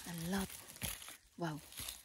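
A mushroom is pulled from rustling grass.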